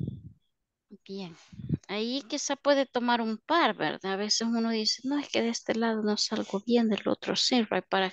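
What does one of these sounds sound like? A woman speaks steadily over an online call.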